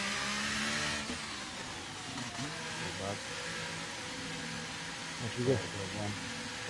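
A racing car engine idles low and steady in the pit lane.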